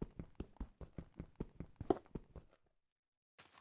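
A pickaxe chips rapidly at stone blocks.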